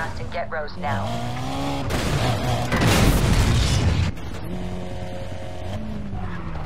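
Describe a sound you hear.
A car engine revs loudly and shifts through gears.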